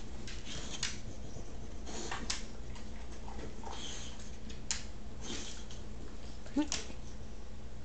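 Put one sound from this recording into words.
A dog's claws click on a hard tile floor.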